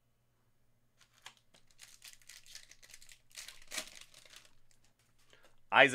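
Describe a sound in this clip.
Plastic wrapping crinkles and rustles as a card pack is torn open.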